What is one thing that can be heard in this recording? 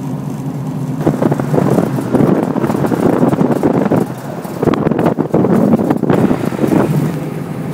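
Wind rushes past a moving car.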